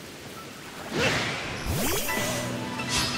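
A sharp magical burst crackles and whooshes.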